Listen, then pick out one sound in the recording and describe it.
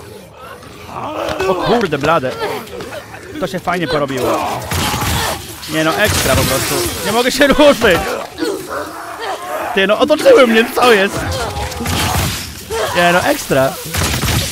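A young man shouts and laughs excitedly into a close microphone.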